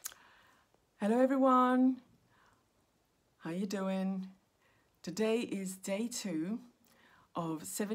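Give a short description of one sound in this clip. A woman speaks warmly and clearly into a nearby microphone, with pauses between phrases.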